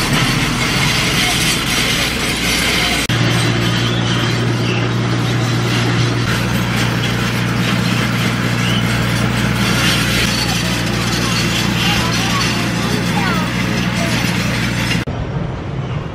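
An excavator engine rumbles steadily nearby.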